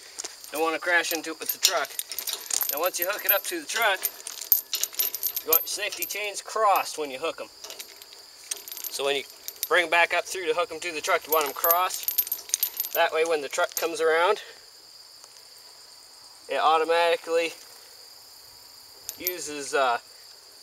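A metal chain rattles and clinks as it is handled.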